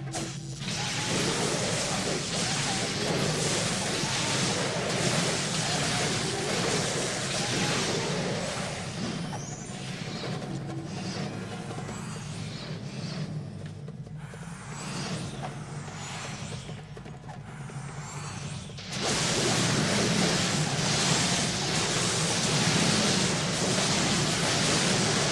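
Video game combat sounds crackle and clash.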